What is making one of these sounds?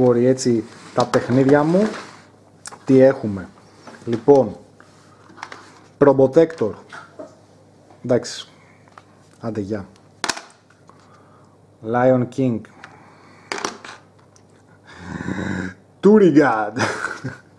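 Plastic game cartridges clack together as they are handled.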